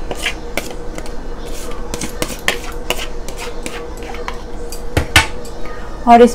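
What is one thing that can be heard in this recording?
A metal spoon taps against a plastic strainer.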